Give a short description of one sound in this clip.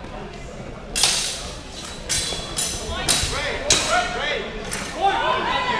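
Wrestlers slap and thud against each other on a mat.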